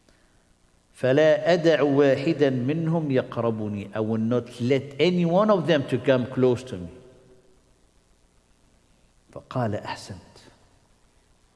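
A middle-aged man speaks calmly and with feeling into a nearby microphone.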